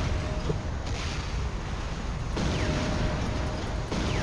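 An explosion booms up ahead.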